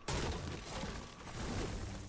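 A pickaxe strikes a tree.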